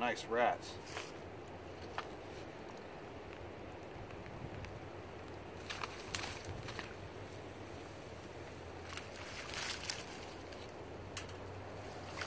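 Dry reeds rustle and crackle.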